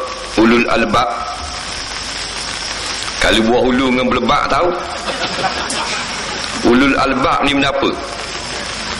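A middle-aged man speaks with animation into a microphone, heard through a loudspeaker in a reverberant hall.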